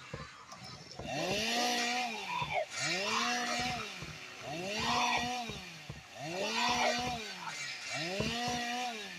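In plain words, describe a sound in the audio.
A chainsaw revs up and down again and again.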